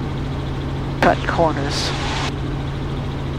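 A man speaks briefly over a headset intercom.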